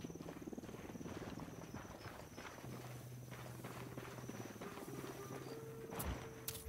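Footsteps crunch steadily on gravelly ground.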